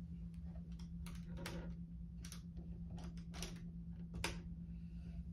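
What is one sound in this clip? Keys on a keyboard click and clack.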